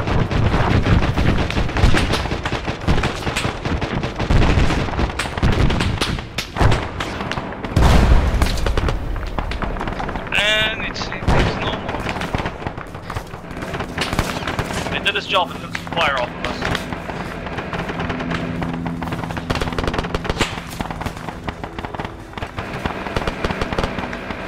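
Gunshots crack in rapid bursts nearby and far off.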